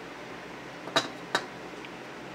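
A metal ruler taps against a hard surface.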